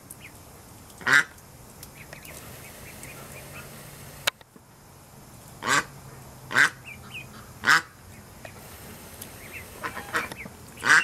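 Ducks quack loudly now and then, close by.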